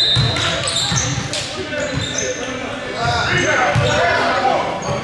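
Players and onlookers call out in a large echoing gym.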